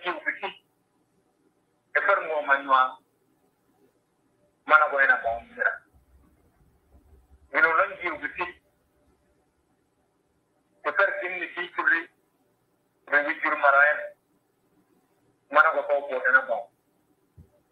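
A man speaks calmly in short phrases, heard through an online call.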